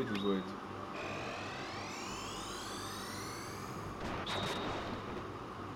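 A magical lightning attack crackles and whooshes with sweeping tones.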